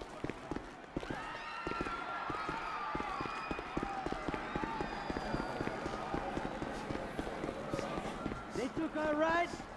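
Footsteps run quickly up stairs and across a hard floor.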